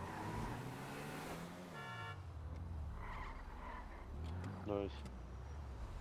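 A sports car engine hums and revs as the car drives and skids to a stop.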